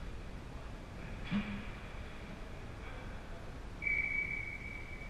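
Ice skates scrape and hiss across the ice in an echoing rink.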